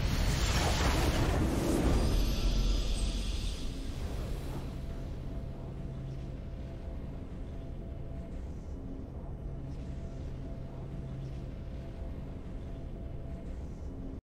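A triumphant game fanfare plays after the fight.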